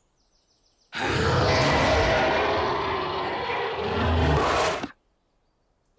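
A cartoon dragon roars loudly.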